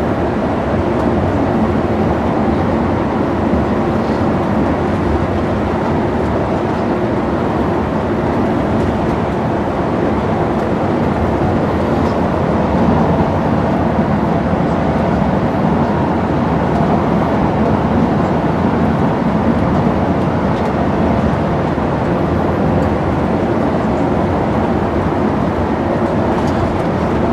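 Tyres hum and rumble on the road.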